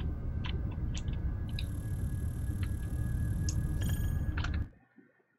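A spacecraft engine rumbles low and steady, then cuts out.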